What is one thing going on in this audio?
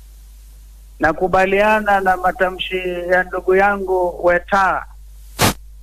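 A man shouts through a loudspeaker to a crowd.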